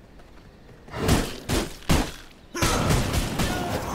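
Blades swish and strike in quick blows.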